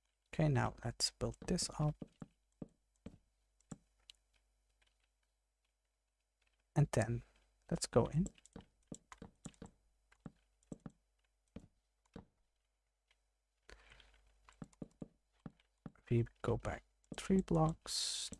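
Wooden blocks are placed with soft knocking thuds.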